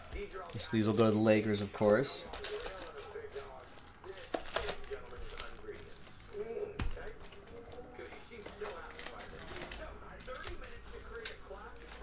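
Foil card packs rustle and slap together as they are handled.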